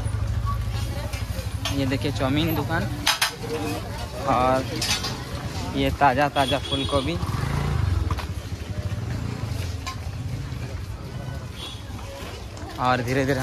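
Men and women chatter nearby in a busy outdoor crowd.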